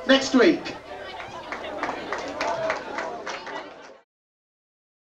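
A crowd claps and cheers in a room that echoes.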